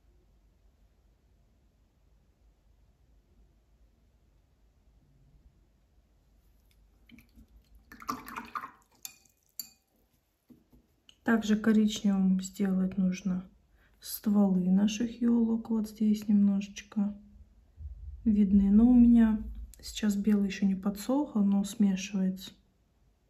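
A paintbrush strokes softly on paper.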